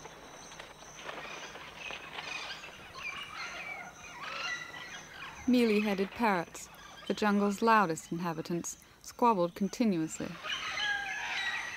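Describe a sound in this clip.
Parrots squawk and chatter loudly.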